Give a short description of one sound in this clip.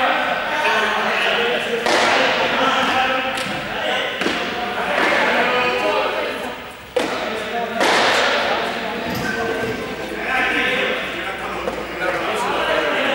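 Many children shout and call out in a large echoing hall.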